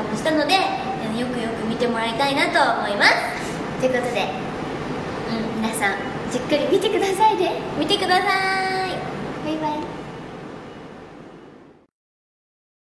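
A second young woman speaks cheerfully close by.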